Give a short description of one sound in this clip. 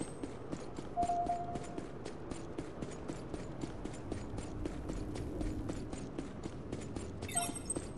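Footsteps patter quickly and evenly on hard ground.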